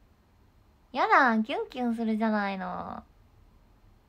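A young woman speaks in a high, excited voice close to a microphone.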